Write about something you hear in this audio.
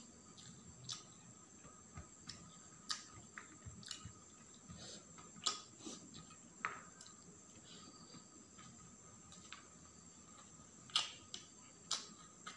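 Fingers squish and mix rice on a metal plate up close.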